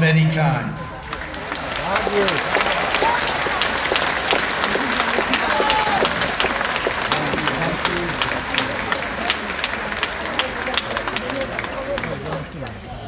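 A large crowd applauds and cheers outdoors.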